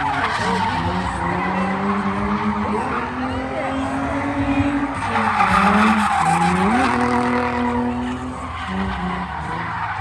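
Tyres screech loudly as a car drifts.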